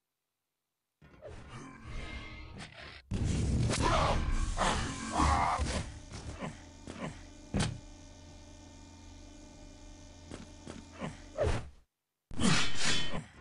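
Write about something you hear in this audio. Video game gunshots bang and crack.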